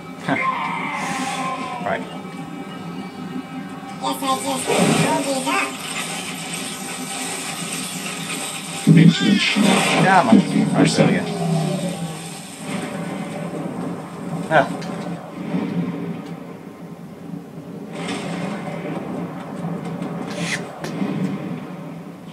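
Video game sound effects whoosh and bang from a television speaker.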